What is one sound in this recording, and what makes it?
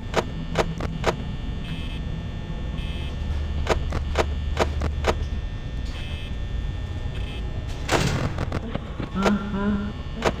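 An electric fan hums steadily.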